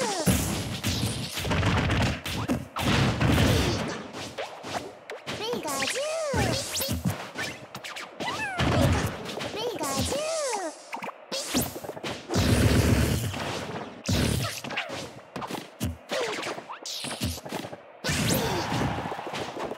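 Cartoonish game sound effects whoosh and chirp, rising and falling in pitch.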